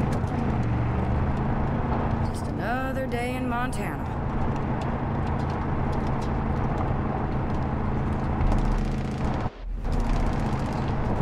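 Tyres rumble on a dirt road.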